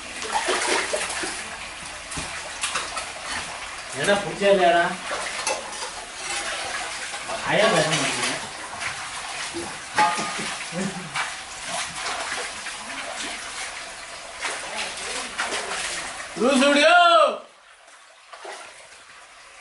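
Feet slosh through wet mud.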